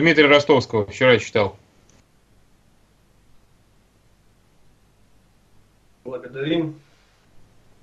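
An elderly man speaks calmly and close, heard through a microphone.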